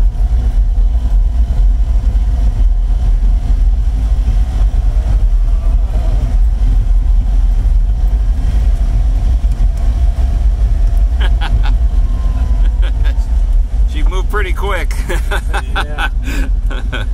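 Tyres roll over a cobbled street.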